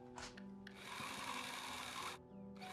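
A cordless drill whirs as it drives a screw.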